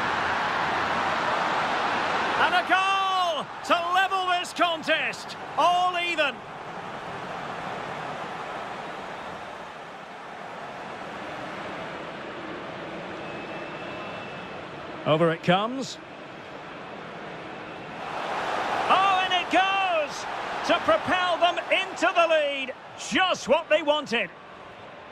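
A large stadium crowd roars and cheers, swelling loudly at times.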